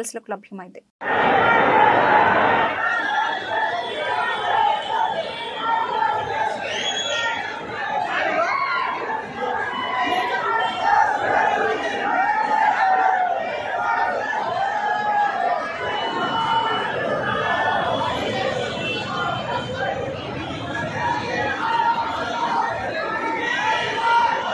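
A large crowd shouts and chants outdoors.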